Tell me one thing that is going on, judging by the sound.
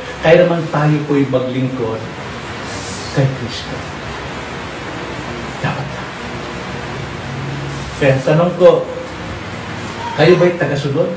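An elderly man speaks with animation into a microphone, pausing between phrases.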